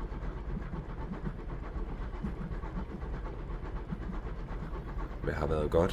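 Train wheels roll and clatter over rails.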